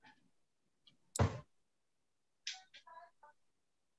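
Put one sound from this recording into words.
Fingers knock and rub against a tablet being held.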